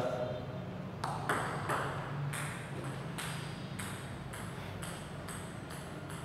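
A table tennis ball clicks back and forth on paddles and the table in a steady rhythm.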